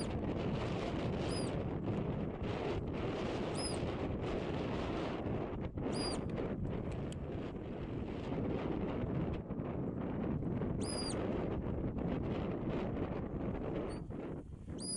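Strong wind blows steadily across open ground.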